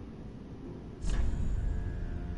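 A game menu opens with a soft whoosh.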